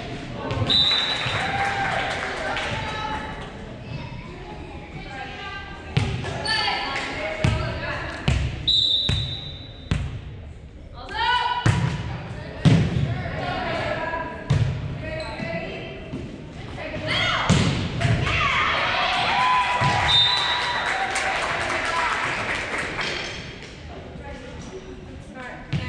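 Players call out and shout to each other in a large echoing hall.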